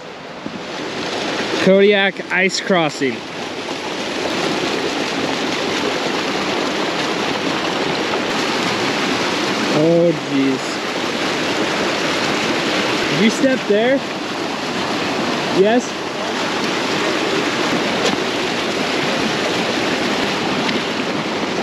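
A stream rushes and gurgles under snow and ice.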